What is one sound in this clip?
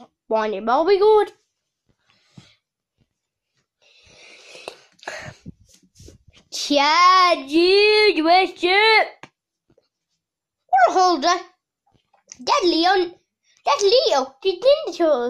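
A man speaks in a high, squeaky puppet voice close by, with animation.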